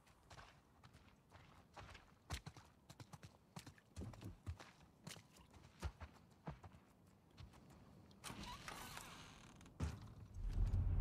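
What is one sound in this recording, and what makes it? Slow footsteps creak and shuffle on a wooden floor.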